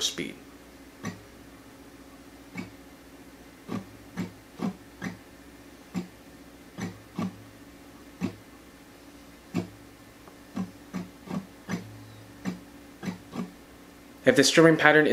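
Guitar strings are tapped softly in a steady rhythm.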